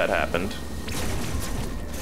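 A blaster fires sharp electronic shots.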